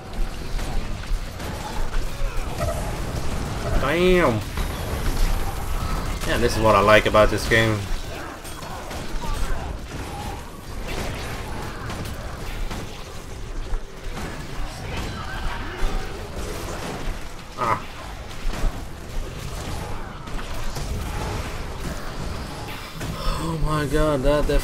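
Fantasy battle sound effects clash and crackle.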